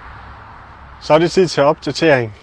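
A young man speaks calmly close by.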